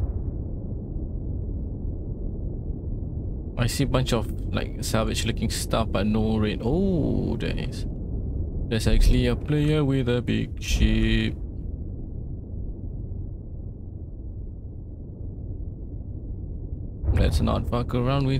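A spaceship engine rumbles steadily and deeply.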